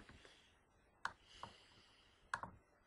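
A video game creature lets out a short electronic cry.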